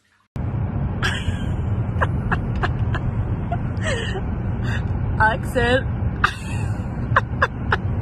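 A pug yelps and howls inside a car.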